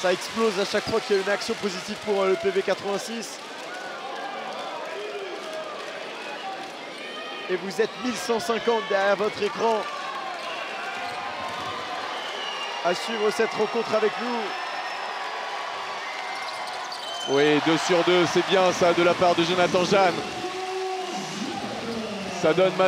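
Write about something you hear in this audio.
A large crowd murmurs in a big echoing arena.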